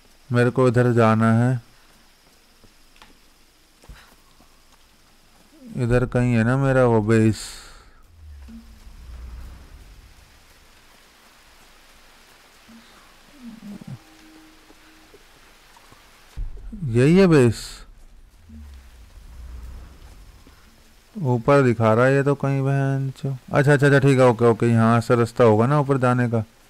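Footsteps crunch over leaves and undergrowth.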